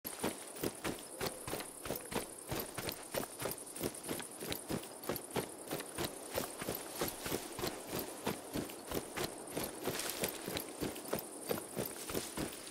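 Quick footsteps run over dirt and gravel.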